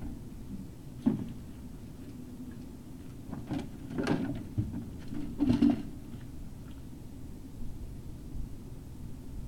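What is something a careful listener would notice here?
A dog sniffs and snuffles at the ground.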